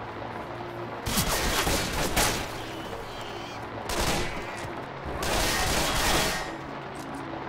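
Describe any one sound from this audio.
Bullets strike a wall in bursts of sharp impacts.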